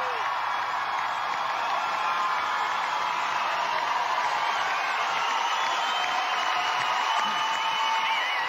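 A large crowd cheers and applauds loudly throughout.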